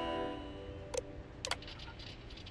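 A computer terminal clicks twice as a page opens.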